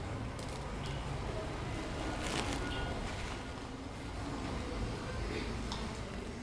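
A small paper packet crinkles and rustles as a man handles it.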